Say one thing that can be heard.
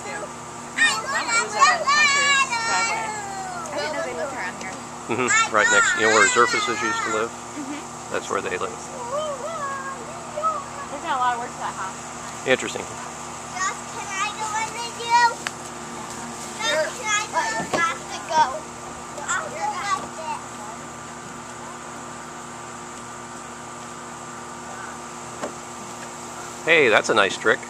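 Young children talk and shout excitedly close by.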